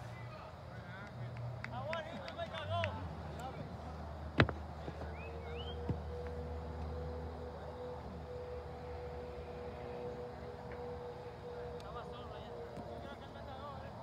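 Young players shout across an open field in the distance.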